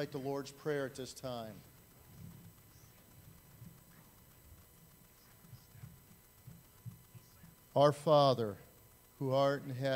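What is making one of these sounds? An elderly man speaks with feeling through a microphone, pausing between phrases.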